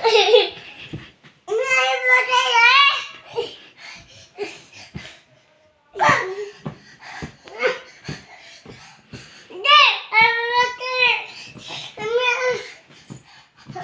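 A toddler babbles and squeals loudly up close.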